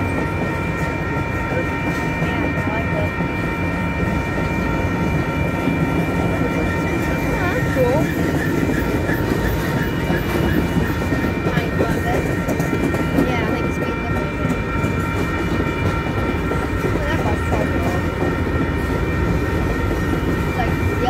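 Steel wheels screech and squeal on the rails.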